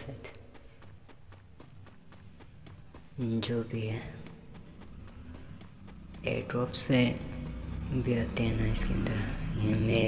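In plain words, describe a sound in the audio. Quick footsteps run on hard ground.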